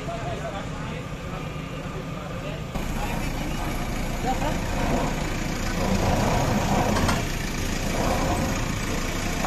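A backhoe loader's diesel engine rumbles steadily nearby.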